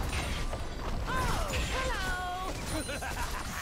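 Game sounds chime with rising and falling tones.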